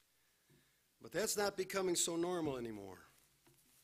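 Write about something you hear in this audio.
A middle-aged man speaks with emphasis into a microphone.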